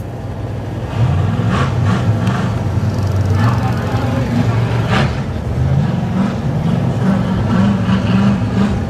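A truck engine rumbles as the truck drives past.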